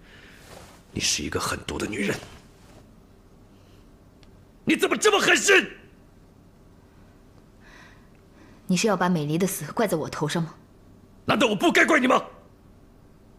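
A man speaks sternly and accusingly.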